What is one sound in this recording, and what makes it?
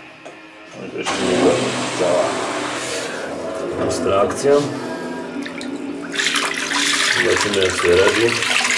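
Water churns and splashes in the jet of an aquarium pump.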